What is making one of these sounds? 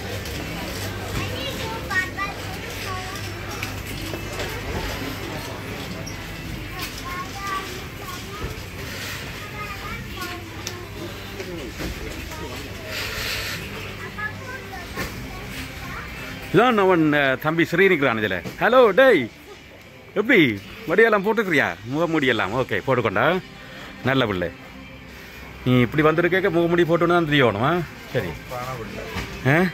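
Shoppers murmur faintly in the distance.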